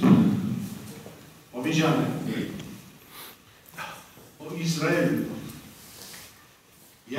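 An elderly man speaks with emphasis into a microphone, echoing through a large hall.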